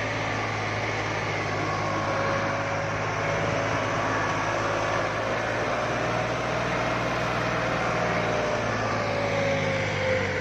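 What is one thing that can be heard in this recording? A diesel tractor engine labours under load, pulling a disc harrow.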